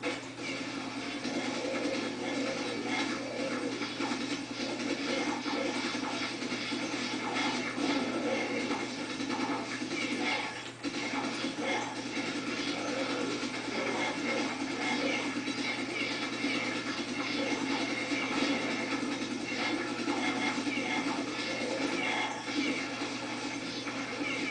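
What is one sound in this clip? Keys clatter rapidly on a keyboard.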